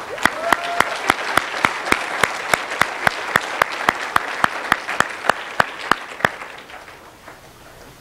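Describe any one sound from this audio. Water splashes and sloshes in a pool.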